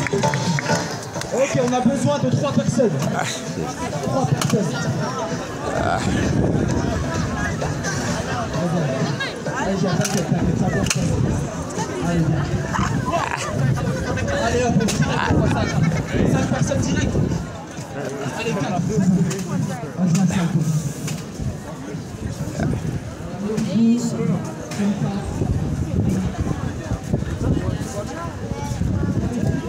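A crowd of people chatter outdoors nearby.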